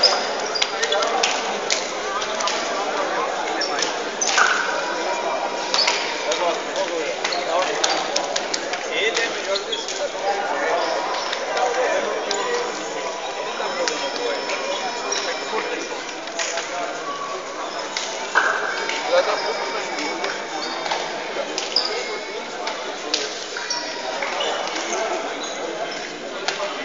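Players' shoes squeak on a hard court floor.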